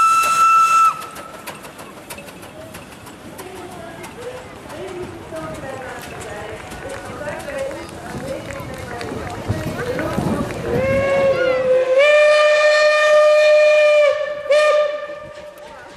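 A steam locomotive whistle blows loud and long, several times.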